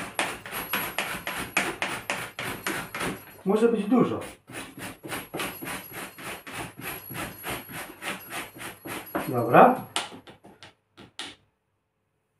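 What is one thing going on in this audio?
A knife taps rapidly and steadily on a cutting board.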